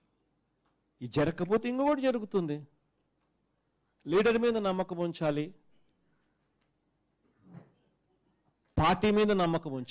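A man speaks with emphasis into a microphone, in short bursts with pauses.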